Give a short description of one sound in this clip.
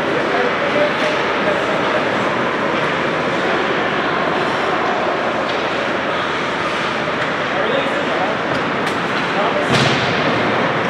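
Hockey sticks clack on the ice and against each other.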